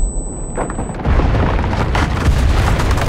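A loud explosion booms nearby and rumbles.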